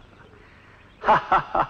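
An elderly man cries out loudly.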